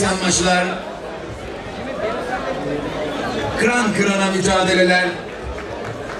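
A man announces loudly through a loudspeaker in a large echoing hall.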